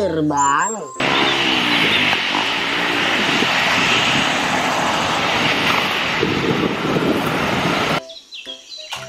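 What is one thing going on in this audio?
A jet airliner's engines roar steadily as it rolls down a runway.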